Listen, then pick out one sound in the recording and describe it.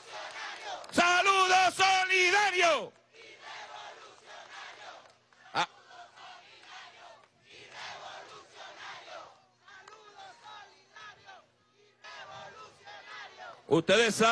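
A crowd cheers and chants outdoors.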